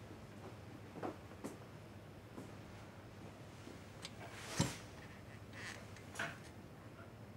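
Dishes clink softly in a sink.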